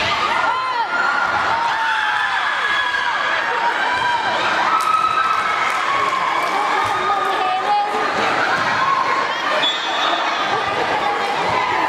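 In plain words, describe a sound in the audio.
A volleyball is struck with a dull slap.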